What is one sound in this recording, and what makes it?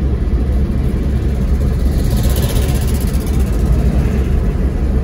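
Tyres hum steadily on a smooth road.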